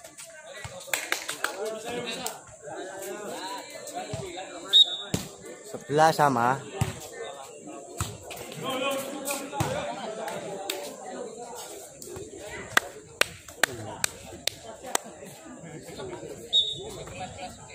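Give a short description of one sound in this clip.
A crowd of young people talk and shout with excitement outdoors.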